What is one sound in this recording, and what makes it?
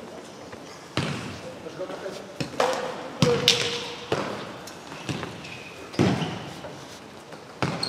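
A ball thuds sharply as players kick it in a large echoing hall.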